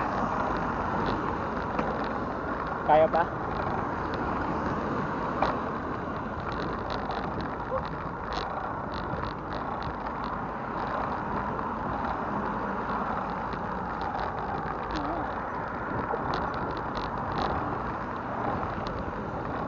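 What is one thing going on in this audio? A bicycle rattles and clicks over the path.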